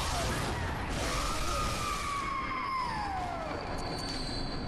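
A creature lets out a long, falling shriek.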